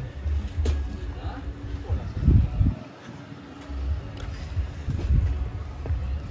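Footsteps thud on wooden boards.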